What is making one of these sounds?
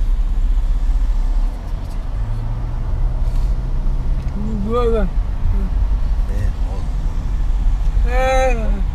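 Road noise rumbles steadily from a car driving along a highway.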